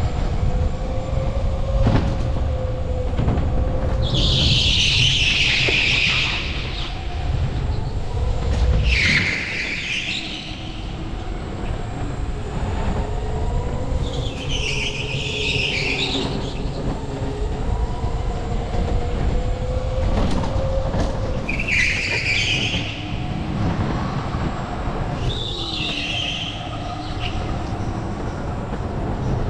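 A kart engine whines and buzzes steadily in a large echoing hall.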